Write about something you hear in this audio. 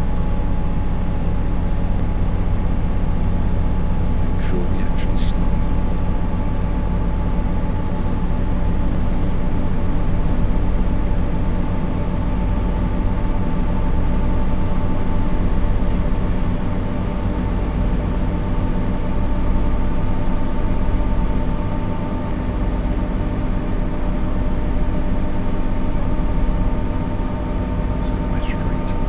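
A train's electric motor hums steadily as the train runs along the track.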